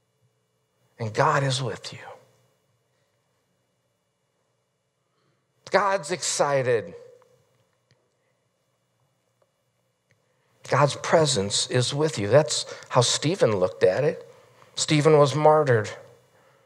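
A middle-aged man preaches with animation through a microphone, pausing between phrases.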